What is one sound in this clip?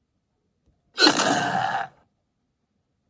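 A burst of loud explosions rings out.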